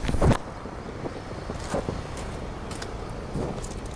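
A car door unlatches and swings open.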